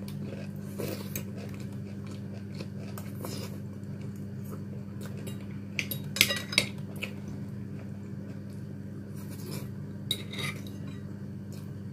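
A fork scrapes and clinks against a plate.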